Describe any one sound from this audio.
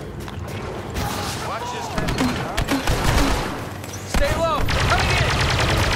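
Blaster shots zap and whine in quick bursts.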